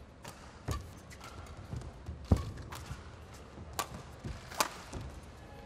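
Badminton rackets strike a shuttlecock in a rally in a large indoor hall.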